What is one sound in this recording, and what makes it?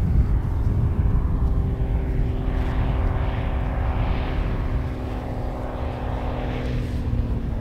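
A small propeller plane's engine drones steadily overhead.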